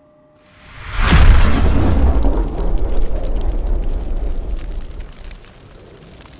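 A deep explosion booms and slowly rumbles away.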